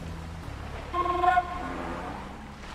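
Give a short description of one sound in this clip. A short game chime rings.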